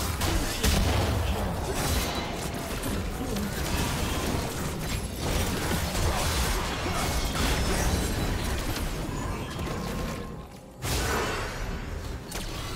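Game spells crackle and whoosh in a fast fight.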